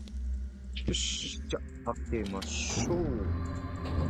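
A heavy door creaks and grinds open.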